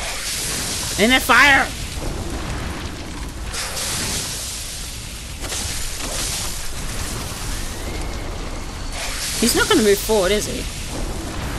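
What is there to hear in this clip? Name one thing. A young woman speaks briefly with animation into a nearby microphone.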